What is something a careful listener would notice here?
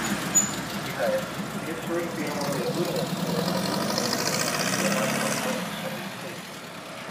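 Cars and a van drive past on a nearby road.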